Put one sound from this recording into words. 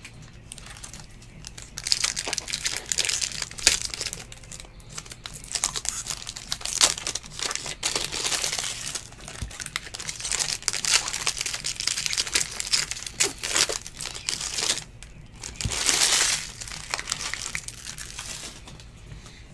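A foil wrapper crinkles and tears loudly close by.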